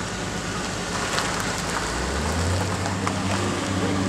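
A pickup truck drives past on the road.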